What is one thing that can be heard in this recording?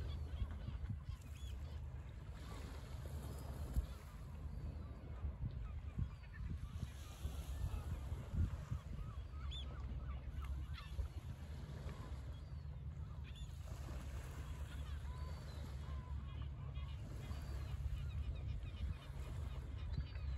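Wind blows steadily across an open beach.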